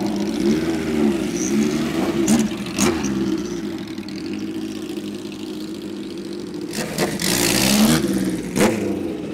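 A motorcycle engine idles and revs loudly nearby.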